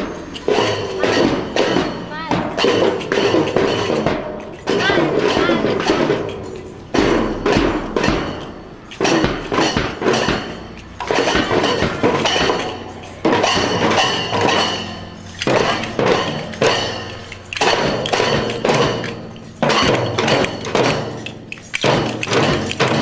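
Cymbals clash in time with the drums.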